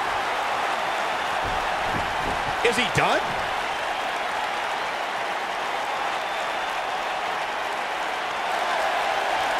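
A large crowd roars and murmurs steadily in a big arena.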